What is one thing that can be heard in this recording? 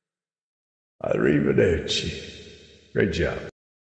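An elderly man sings close to a microphone.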